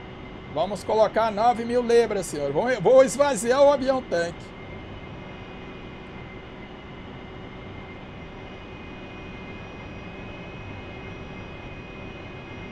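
A jet engine hums steadily.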